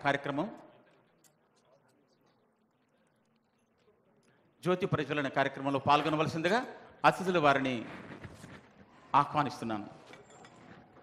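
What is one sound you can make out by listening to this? A man speaks loudly over a loudspeaker in an echoing hall.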